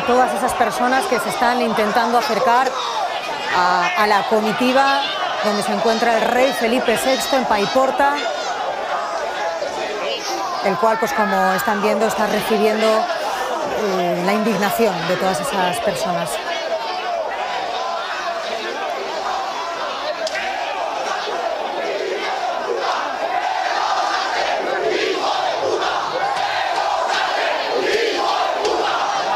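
A crowd shouts and jeers loudly outdoors.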